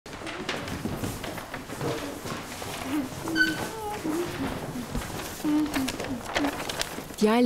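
Several children talk and chatter nearby in a lively way.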